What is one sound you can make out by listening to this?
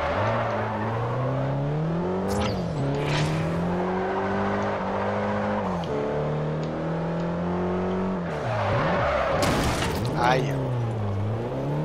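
A racing car engine revs hard, dropping in pitch at each gear change.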